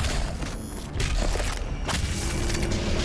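A creature bursts apart with a wet splatter.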